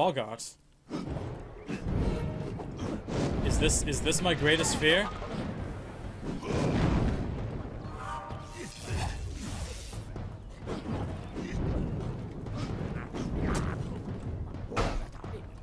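Magic blasts and fiery explosions boom.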